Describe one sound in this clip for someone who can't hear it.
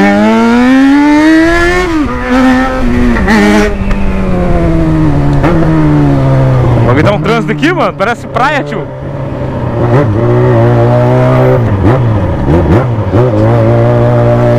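A motorcycle engine revs up and down close by as the bike rides along.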